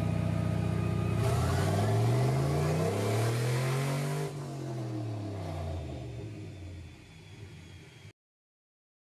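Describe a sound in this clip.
An engine revs and then slows down.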